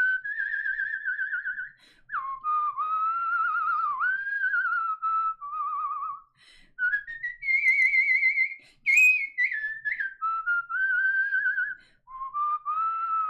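A young woman whistles a warbling tune close to a microphone.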